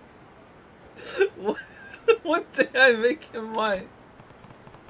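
A man speaks with a smug chuckle, close by.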